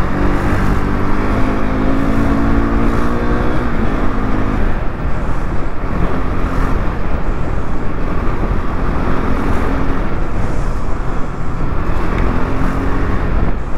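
A motorcycle engine hums and revs steadily up close.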